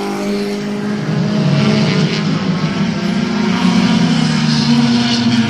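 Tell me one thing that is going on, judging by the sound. Race car engines roar steadily around a track nearby, rising as the cars pass.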